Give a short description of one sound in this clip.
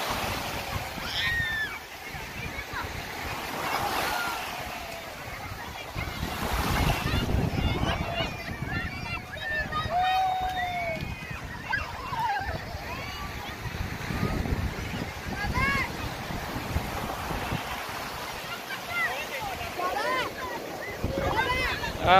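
Children shout and squeal in high voices nearby.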